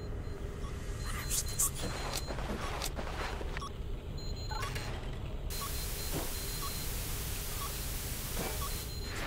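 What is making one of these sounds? An electronic device beeps softly, about once a second.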